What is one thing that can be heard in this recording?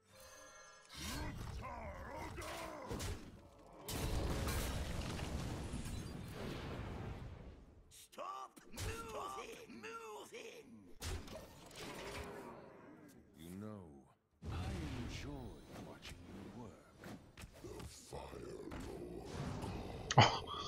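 Magical game effects whoosh and crash as cards attack.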